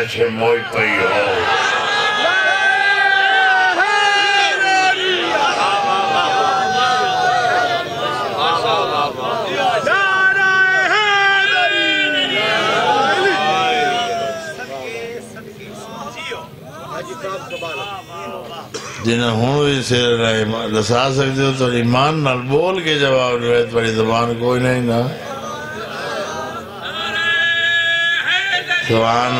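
A man sings a mournful chant loudly through a microphone.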